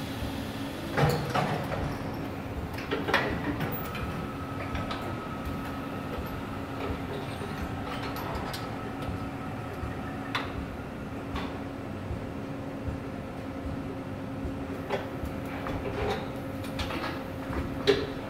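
Metal parts clank and knock now and then.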